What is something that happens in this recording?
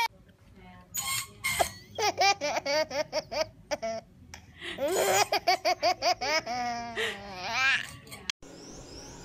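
A baby laughs and squeals with glee.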